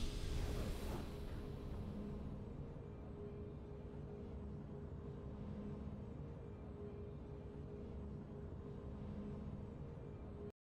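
A soft victory tune plays quietly.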